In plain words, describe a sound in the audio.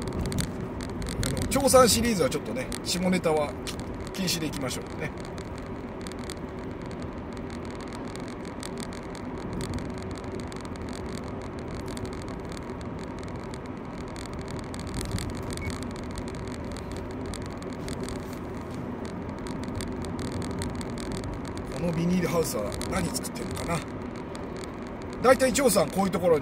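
A car engine hums steadily, heard from inside the car.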